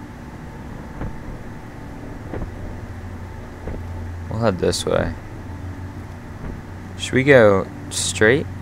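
Footsteps tread slowly on stone.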